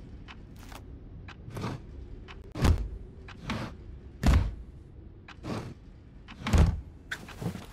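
A hand knocks on a wooden drawer with dull thuds.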